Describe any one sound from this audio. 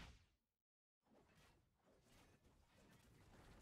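Video game spell effects whoosh and clash.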